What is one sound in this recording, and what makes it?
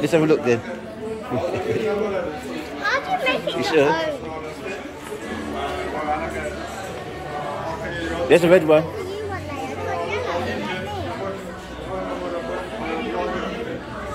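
A young girl talks and exclaims close by.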